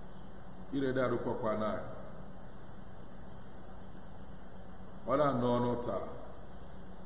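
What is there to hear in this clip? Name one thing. A man speaks calmly into a microphone in short phrases, with long pauses between them.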